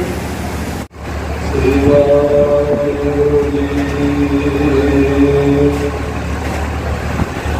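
A man sings steadily through a microphone.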